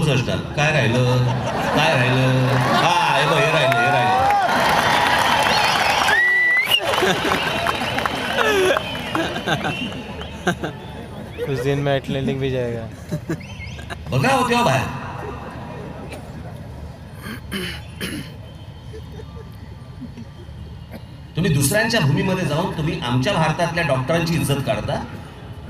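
A man speaks forcefully through loudspeakers, echoing outdoors.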